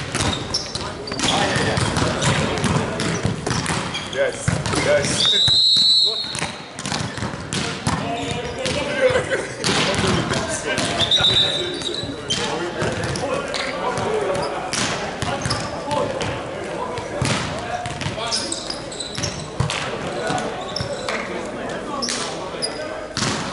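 Volleyballs thud and smack loudly, echoing in a large hall.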